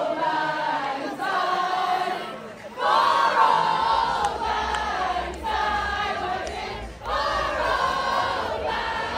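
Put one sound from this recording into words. A large crowd sings together loudly outdoors, in phrases with short pauses.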